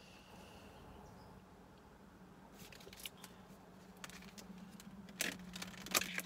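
Small clicks and taps come from handling objects.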